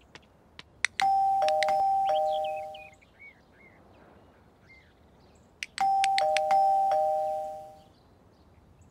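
A doorbell chimes twice with a two-note ding-dong.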